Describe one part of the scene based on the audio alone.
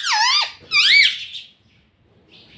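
A parrot screeches loudly in sharp, rising and falling squawks up close.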